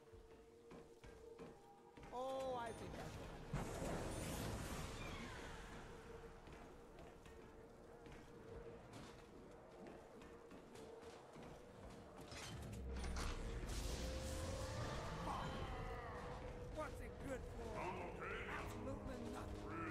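Footsteps thud quickly on metal floors.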